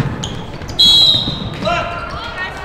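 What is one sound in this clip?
A referee's whistle blows a sharp, loud blast.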